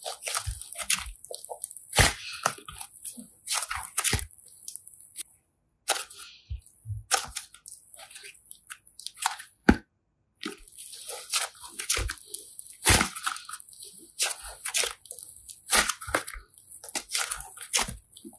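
Sticky slime squelches and crackles as hands squeeze and stretch it.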